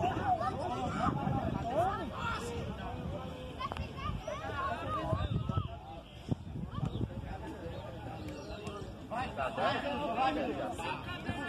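Young men shout and call out at a distance outdoors.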